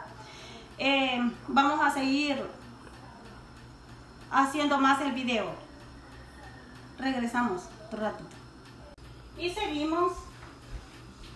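A middle-aged woman talks close by in a calm, explaining way.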